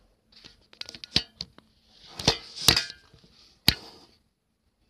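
Fingers bump and scrape against the microphone, close up.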